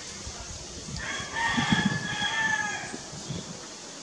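A baby monkey squeaks and whimpers softly.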